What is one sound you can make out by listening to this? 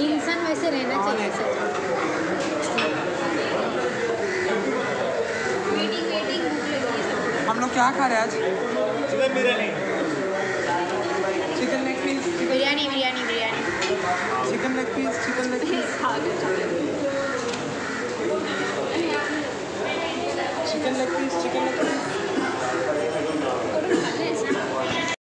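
Many voices chatter in the background of an echoing room.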